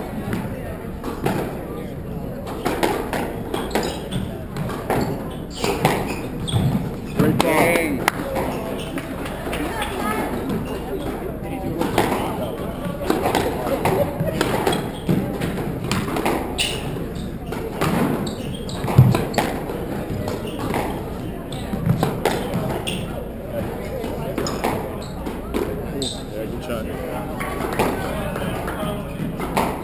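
Rackets strike a squash ball with sharp pops.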